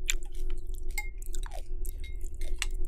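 A metal spoon scrapes and clinks against a glass bowl.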